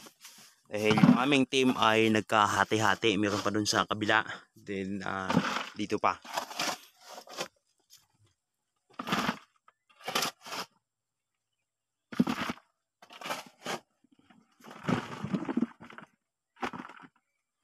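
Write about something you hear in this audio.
A trowel scrapes and digs into dry soil.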